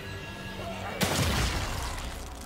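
A pistol fires a single loud shot.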